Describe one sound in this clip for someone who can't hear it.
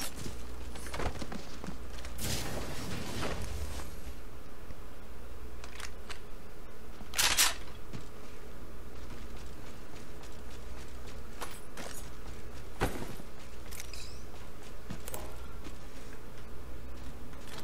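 Short game sound effects click and chime as items are picked up.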